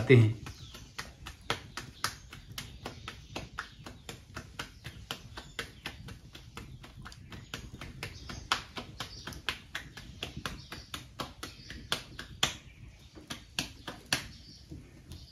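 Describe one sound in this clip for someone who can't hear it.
Hands slap and pat dough in quick rhythm.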